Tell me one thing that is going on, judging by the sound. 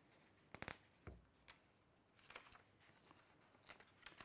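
A sheet of paper rustles as it is lifted.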